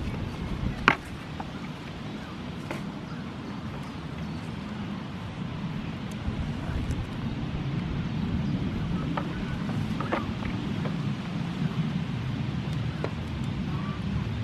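A goat's hooves clop on wooden boards.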